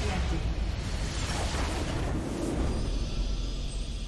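A game's spell effects crackle and rumble loudly.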